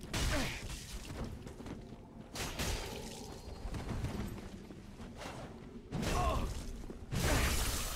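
Blades swing and strike in a fight, with sharp whooshes and hits.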